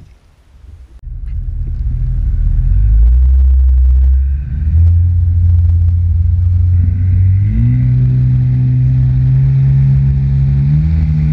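Water splashes and rushes against a jet ski's hull.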